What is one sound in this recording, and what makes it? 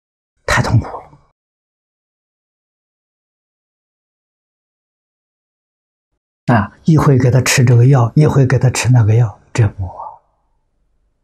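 An elderly man speaks calmly and close to a microphone, in short bursts with long pauses.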